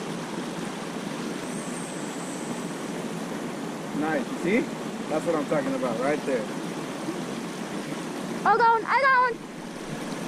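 Water splashes steadily from a small fountain in a pond.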